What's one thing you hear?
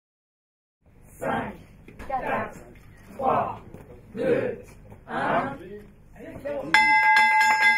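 A group of men and women count down together loudly.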